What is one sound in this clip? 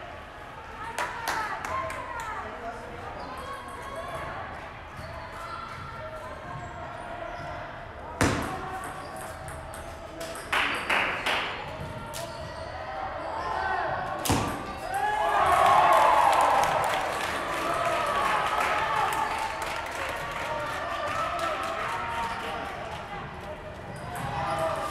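A table tennis ball clicks sharply off paddles and the table in a large echoing hall.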